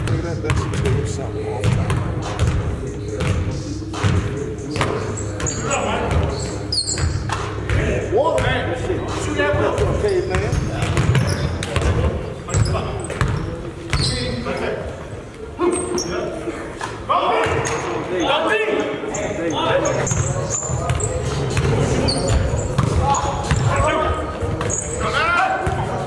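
Men shout and call out to each other during play.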